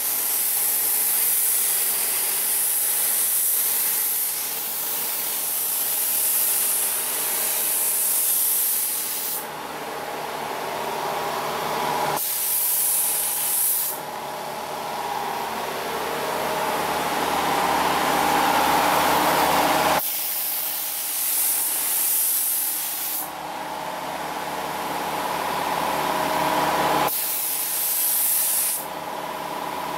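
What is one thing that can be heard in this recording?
A spray gun hisses loudly in long bursts.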